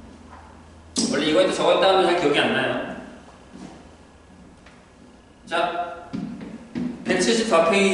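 A man talks in bursts, close by.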